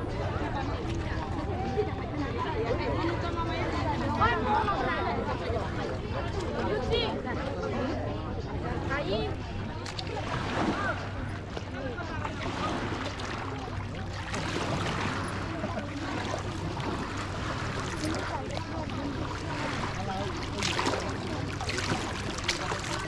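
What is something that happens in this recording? A crowd of women and men chatter nearby outdoors.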